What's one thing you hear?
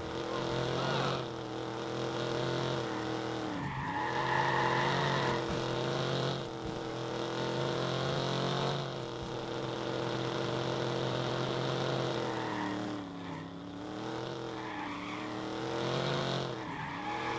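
A car engine roars steadily, rising and falling in pitch as it speeds up and slows.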